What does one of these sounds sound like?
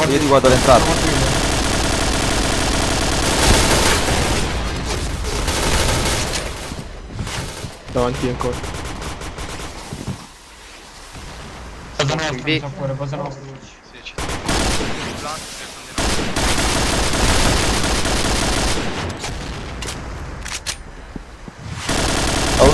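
Gunshots rattle in quick bursts.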